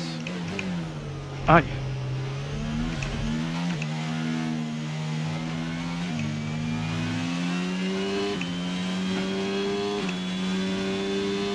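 A racing car engine roars loudly, its pitch climbing and dropping with each gear change.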